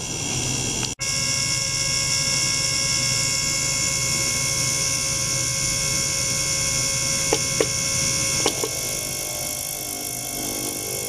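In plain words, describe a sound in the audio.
Water fizzes and bubbles in a glass jar.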